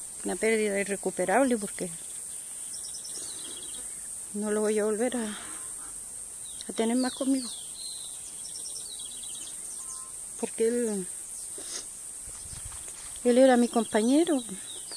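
An elderly woman speaks close by in a tearful, halting voice.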